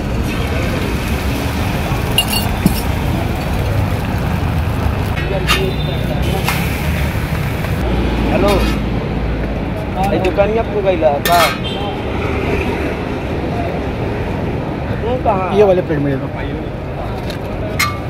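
Food sizzles steadily on a hot griddle.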